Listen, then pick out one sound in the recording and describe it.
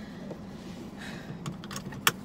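A seatbelt slides across a person's body.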